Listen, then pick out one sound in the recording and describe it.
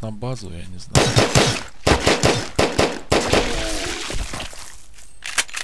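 A weapon fires a rapid burst of blasts.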